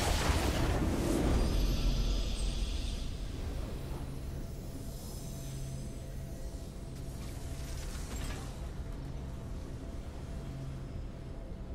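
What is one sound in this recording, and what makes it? A triumphant game fanfare plays.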